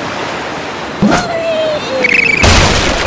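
A slingshot twangs as it launches a cartoon bird.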